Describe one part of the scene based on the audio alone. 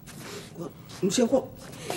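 A man speaks, arguing back.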